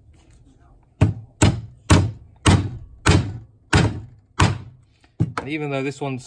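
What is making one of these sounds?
A hammer strikes metal sharply in a steady series of blows.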